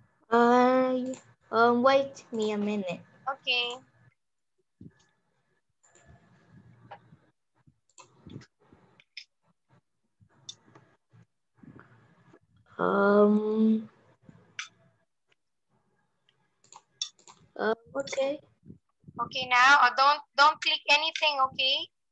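A woman speaks with animation over an online call.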